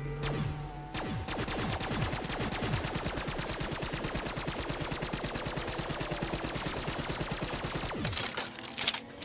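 A gun fires rapidly in a steady stream of shots.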